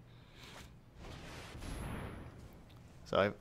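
A card game plays a soft whooshing effect.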